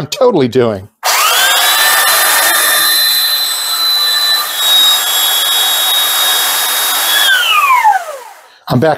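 A belt sander whirs loudly with a high whine, then winds down.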